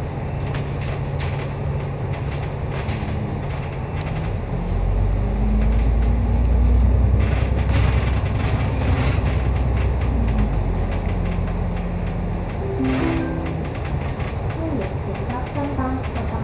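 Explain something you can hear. A bus engine hums and rumbles steadily, growing louder as it picks up speed.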